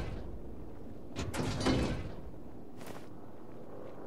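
A metal locker door creaks open.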